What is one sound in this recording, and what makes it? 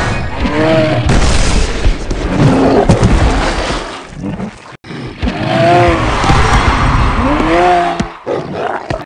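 A large creature bellows loudly.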